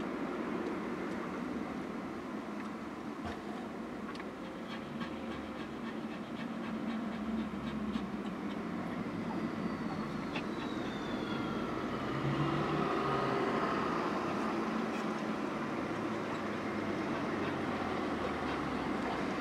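A car engine idles steadily from inside the car.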